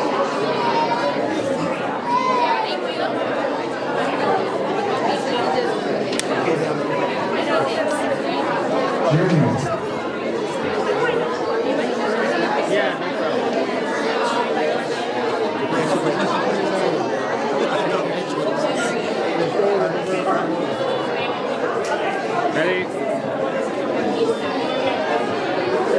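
Many adults chatter and talk over one another.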